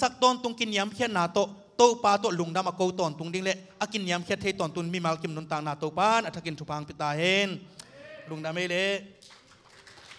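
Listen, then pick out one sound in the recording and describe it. A man speaks passionately through a microphone in a large echoing hall.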